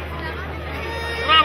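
An accordion plays.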